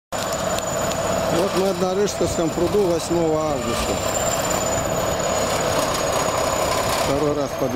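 A bulldozer's diesel engine rumbles steadily nearby, outdoors.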